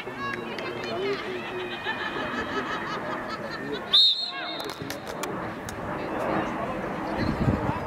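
Young players and spectators shout and call out outdoors.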